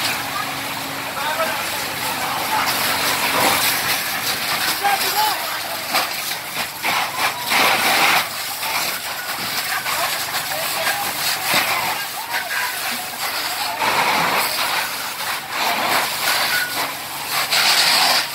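Fire hoses hiss and spray water in a steady rush.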